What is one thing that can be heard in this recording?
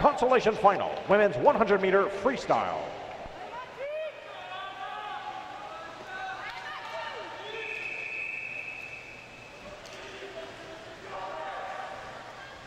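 People murmur and call out in a large echoing hall.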